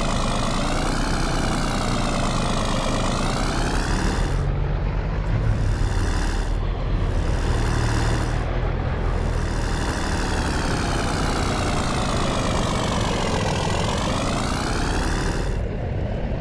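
A diesel truck engine idles with a deep rumble and revs up and down.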